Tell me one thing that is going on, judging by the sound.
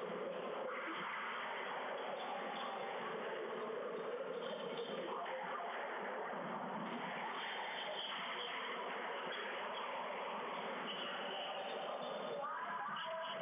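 A squash ball smacks sharply off racquets and walls in a quick rally.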